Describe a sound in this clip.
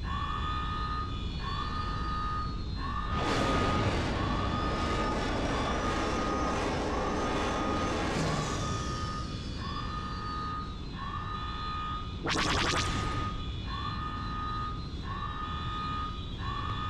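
A starfighter engine hums steadily.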